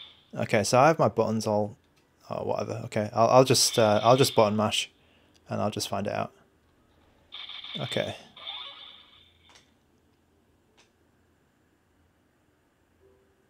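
Buttons on a handheld game console click softly.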